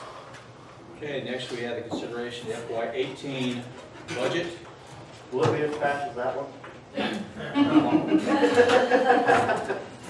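A man speaks calmly in a room with a slight echo, heard from across the room.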